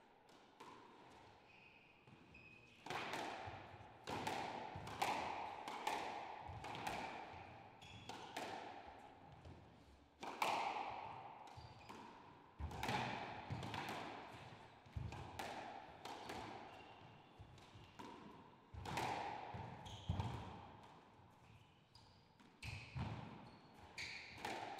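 Shoes squeak sharply on the wooden floor.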